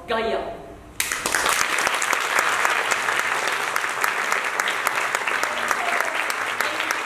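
An audience and performers applaud loudly.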